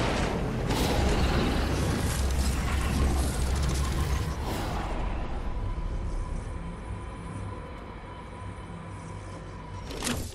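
Wind rushes loudly past during a fast glide through the air.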